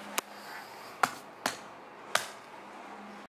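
A hand slaps a watermelon with dull, hollow thumps.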